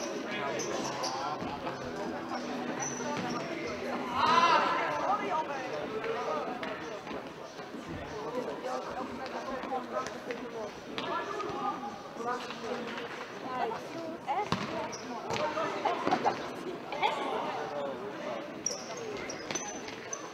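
Spectators chatter and call out in an echoing sports hall.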